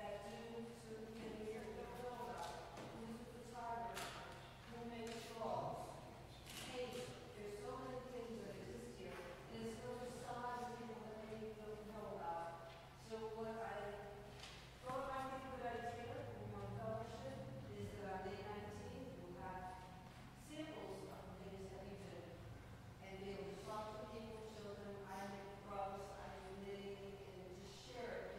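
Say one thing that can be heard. An elderly man speaks calmly and steadily in a large echoing hall.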